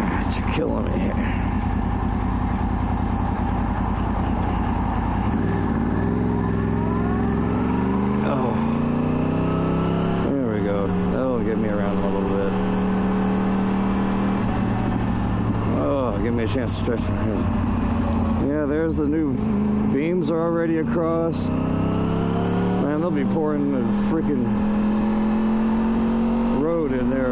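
A motorcycle engine drones steadily, rising and falling in pitch as it speeds up and shifts gears.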